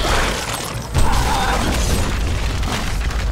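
Flesh bursts with a wet, splattering crunch.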